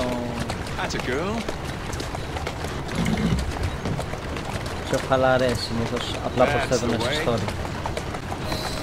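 A horse-drawn carriage rattles over cobblestones.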